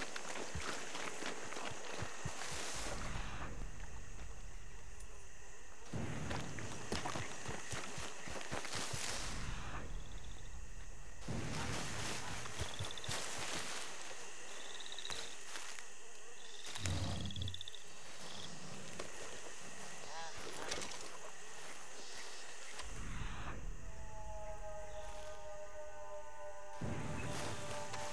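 Footsteps squelch and rustle through wet ground and grass.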